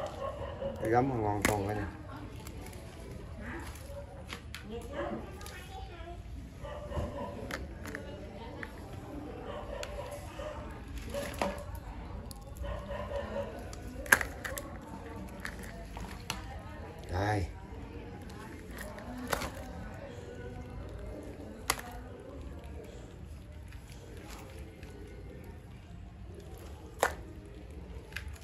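Crabs scrabble and click against a plastic basket.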